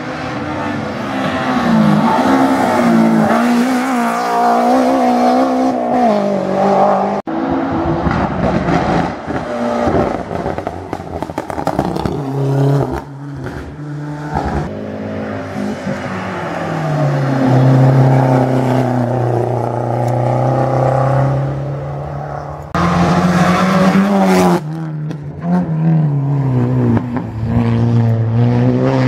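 A rally car engine roars and revs loudly as cars race past one after another.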